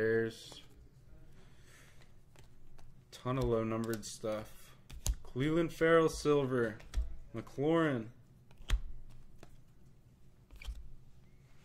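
Trading cards rustle and flick in someone's hands.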